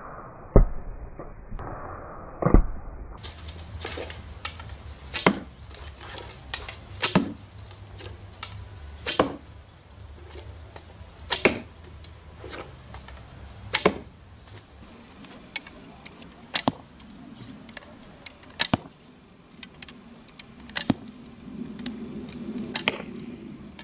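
Arrows thud into a target in quick succession.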